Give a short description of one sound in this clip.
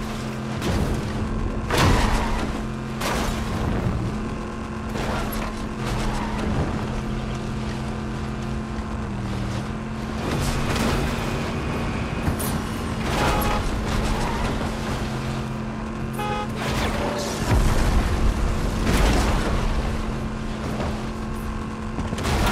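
A game vehicle's engine hums steadily.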